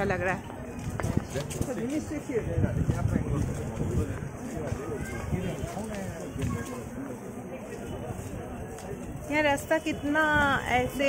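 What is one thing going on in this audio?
Footsteps shuffle on a paved path.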